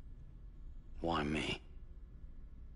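A man answers briefly in a low, rough voice.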